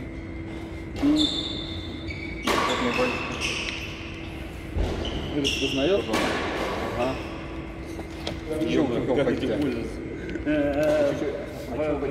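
A man speaks close by in an echoing hall.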